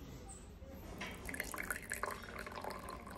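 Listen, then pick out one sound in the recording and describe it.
Tea pours and splashes into a cup.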